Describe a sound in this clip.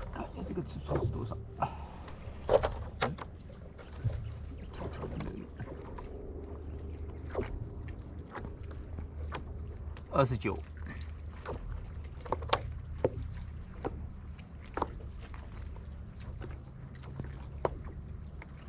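Water laps against a board close by.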